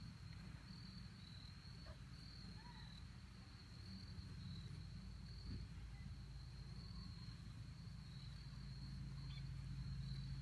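A small child runs on grass at a distance.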